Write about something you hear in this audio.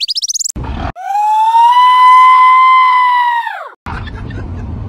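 A dog howls loudly.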